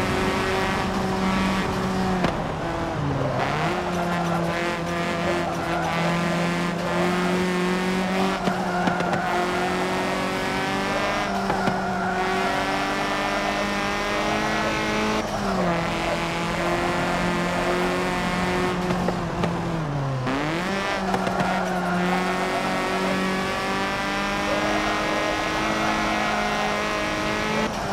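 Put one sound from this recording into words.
A racing car engine roars steadily, its pitch dropping and climbing as the car brakes and speeds up through corners.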